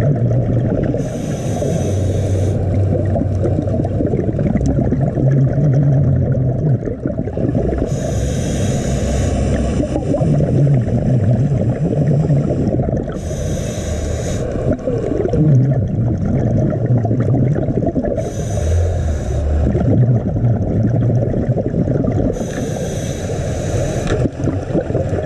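Air bubbles gurgle loudly in bursts from a nearby scuba diver's regulator.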